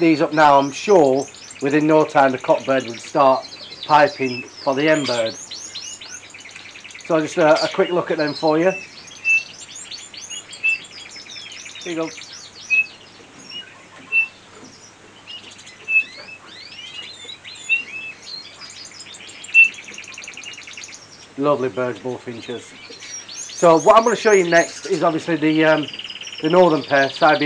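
A caged bird sings loud, low, fluty warbling phrases.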